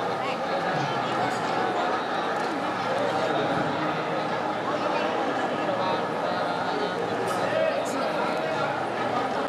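A crowd of men and women chatters and murmurs all around.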